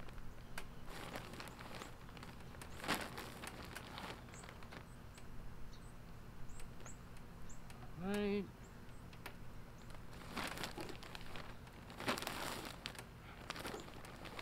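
Soil pours from a bag and rustles.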